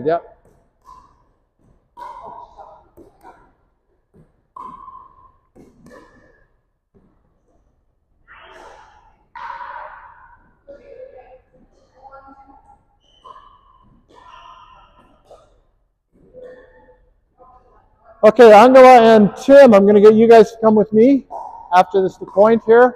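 Paddles knock a plastic ball back and forth in a large echoing hall.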